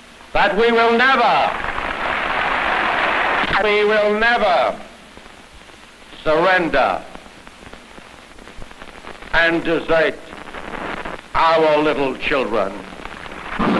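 An elderly man speaks slowly and formally into a microphone, in bursts with pauses.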